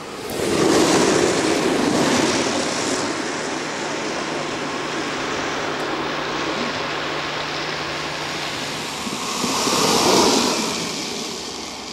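Small wheels roar on asphalt as riders speed past close by.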